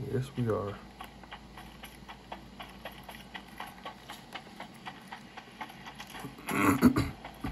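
Buttons on a handheld game controller click rapidly.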